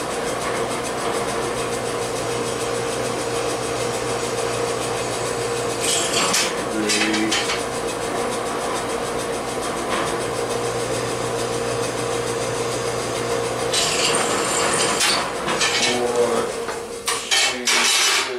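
A power tool whirs steadily close by, then stops.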